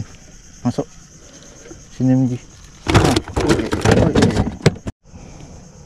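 Hands rummage through a plastic cooler with knocks and rattles.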